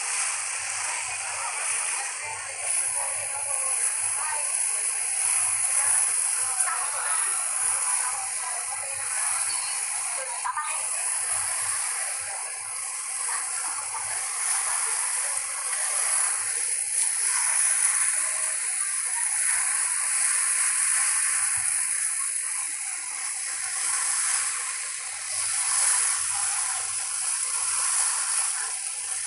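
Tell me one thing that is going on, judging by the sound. Wind blows across open water outdoors.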